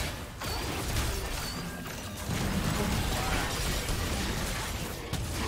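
Magic spells burst and crackle during a fast fight.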